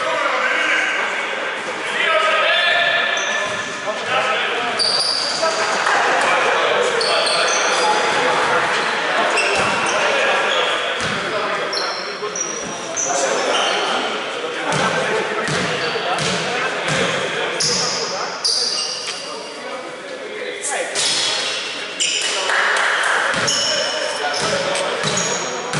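Men shout and call out to each other across a large echoing hall.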